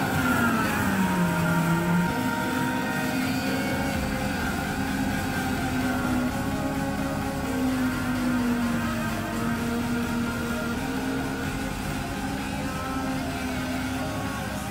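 A forage harvester's engine drones steadily and slowly fades as it moves away.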